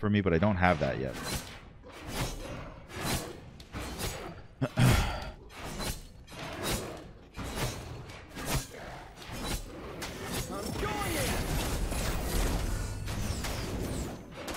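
Game weapons clash and magic effects burst in quick hits.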